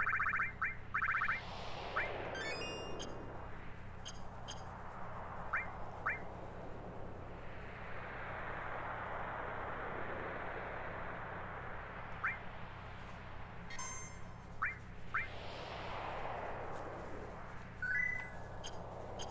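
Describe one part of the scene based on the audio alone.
Short electronic menu beeps chime now and then.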